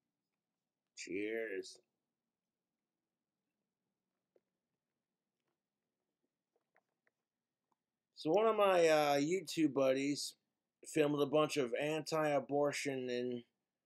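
A man speaks calmly and close up.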